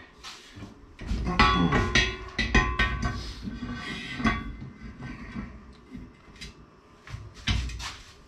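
A steel bar clanks and rings against metal.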